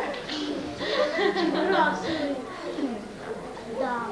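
A young girl laughs.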